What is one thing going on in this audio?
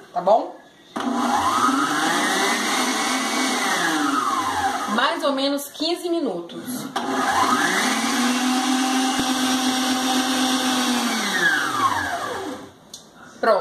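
A stand mixer whirs loudly, speeding up and then slowing to a stop.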